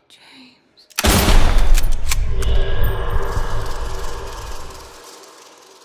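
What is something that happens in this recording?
A rifle fires a loud blast that rumbles and slowly fades.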